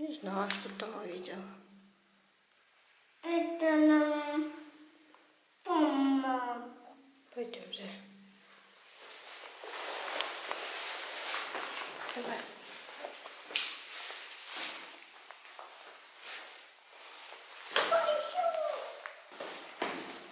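A young child talks in a high voice close by.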